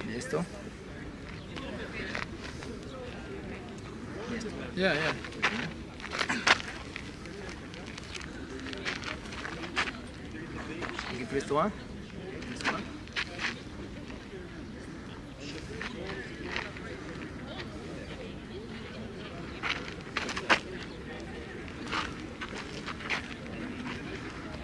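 A man talks calmly close by, outdoors in light wind.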